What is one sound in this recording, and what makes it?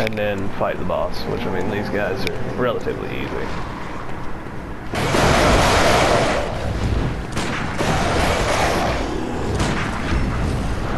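Footsteps run over cobblestones.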